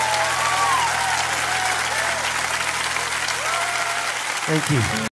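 A piano plays along.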